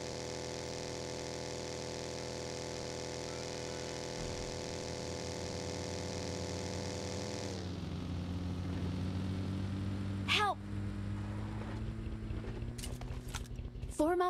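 A small off-road buggy's engine roars at high revs, then drops to a low idle.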